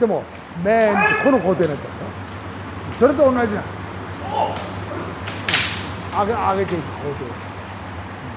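Fighters shout loudly in an echoing hall.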